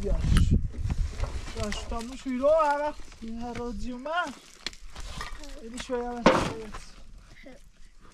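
A plastic sack rustles as it is carried.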